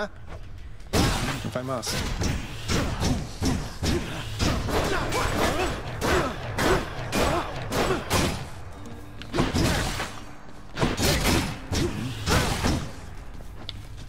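Video game combat clashes with quick hits and thuds.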